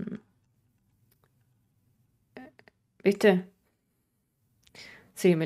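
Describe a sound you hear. A young woman speaks casually and close into a microphone, with pauses.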